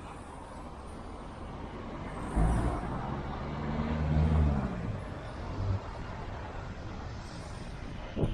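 City traffic rumbles steadily outdoors.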